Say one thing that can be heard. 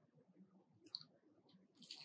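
A young woman bites into crispy fried food with a crunch.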